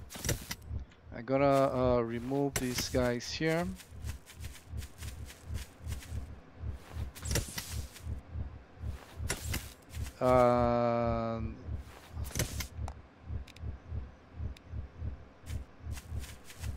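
Footsteps thud steadily through grass.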